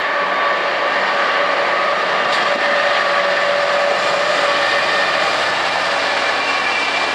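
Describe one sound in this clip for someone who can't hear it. A freight train rumbles steadily past.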